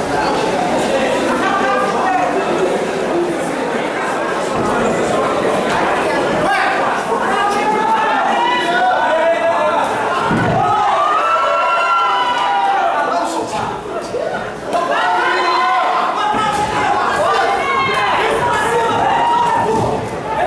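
Men shout loudly from close by.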